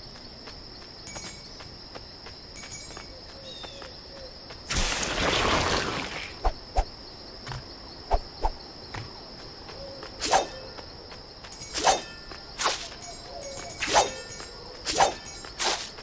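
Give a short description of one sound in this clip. Bright chimes ring out in quick bursts as coins are collected.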